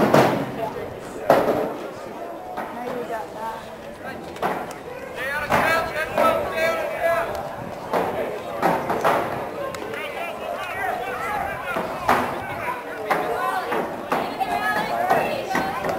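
Boys shout and call to each other across an open field outdoors.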